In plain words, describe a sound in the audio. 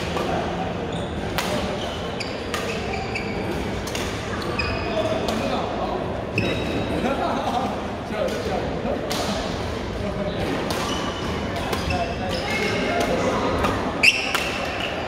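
Voices chatter throughout a large echoing hall.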